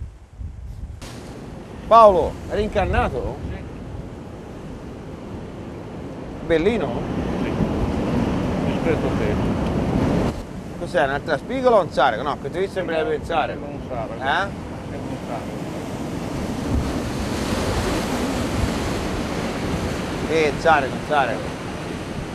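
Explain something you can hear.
An elderly man talks with animation outdoors in wind.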